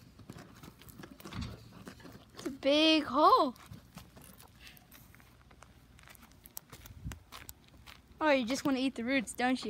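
A dog scratches and paws rapidly at dry dirt.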